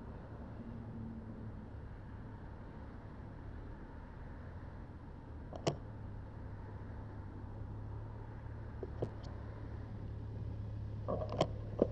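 A vehicle engine hums steadily from inside a moving car.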